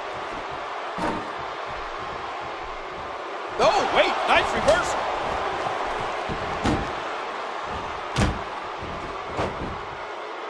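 Heavy thuds sound as wrestlers slam onto the ring mat.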